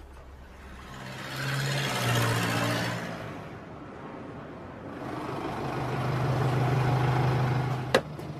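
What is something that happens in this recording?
A car engine hums and drives off.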